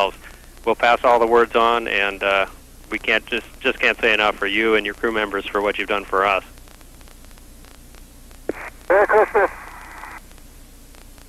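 A man speaks calmly over a crackly radio link.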